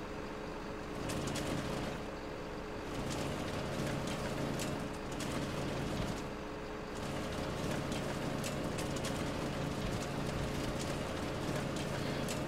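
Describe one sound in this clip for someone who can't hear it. A timber harvester head saws and feeds a log with a whirring rattle.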